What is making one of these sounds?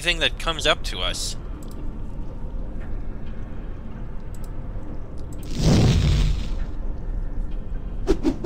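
Lava bubbles and hisses steadily.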